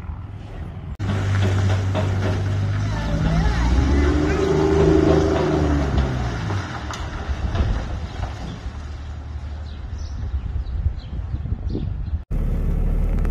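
A Cummins turbo-diesel pickup pulls away towing a loaded trailer.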